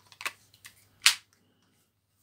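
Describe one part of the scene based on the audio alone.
A plastic phone cover snaps into place.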